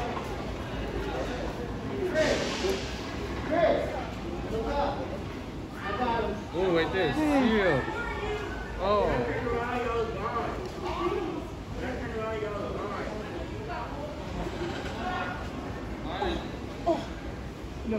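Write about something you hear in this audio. A man talks calmly.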